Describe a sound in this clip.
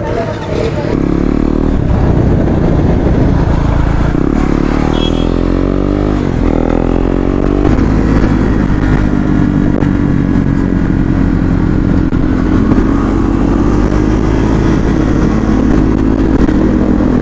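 A motorcycle engine drones steadily while riding at speed.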